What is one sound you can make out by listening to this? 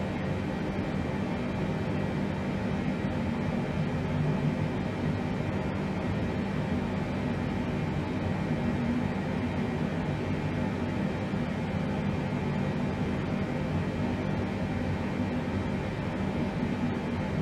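Aircraft engines drone with a steady low rumble.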